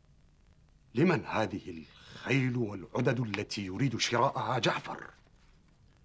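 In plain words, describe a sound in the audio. A middle-aged man speaks firmly and close by.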